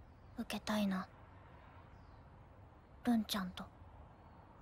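A young girl speaks softly and hesitantly.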